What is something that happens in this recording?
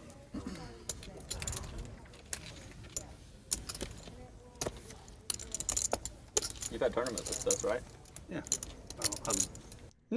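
Poker chips click and clatter.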